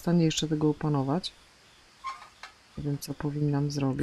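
A metal letter flap creaks open.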